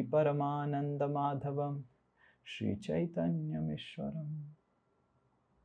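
A man chants in a steady, sung voice close to a microphone.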